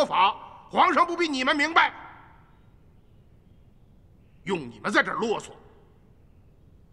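A middle-aged man speaks sternly and firmly, close by.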